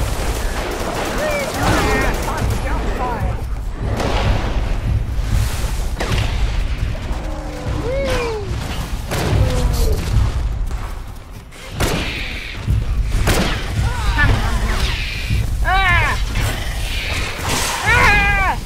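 A dinosaur screeches and chirps in short high calls.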